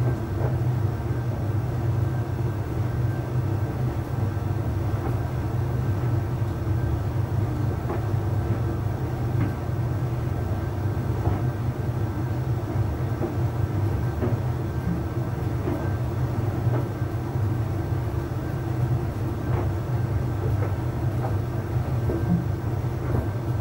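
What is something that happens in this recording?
A tumble dryer hums and rumbles steadily.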